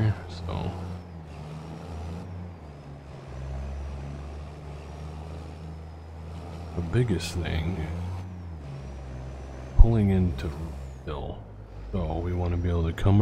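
A truck engine hums steadily at low speed.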